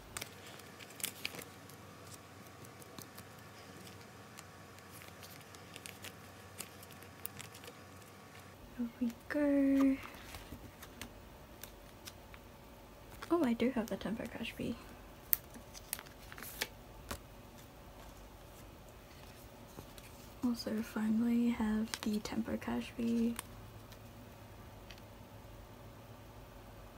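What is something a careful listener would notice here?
Plastic binder sleeves crinkle and rustle close by.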